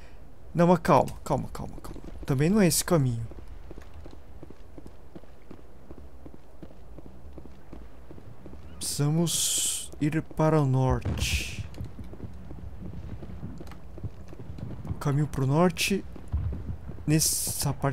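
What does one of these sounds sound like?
Footsteps tap steadily on a hard walkway.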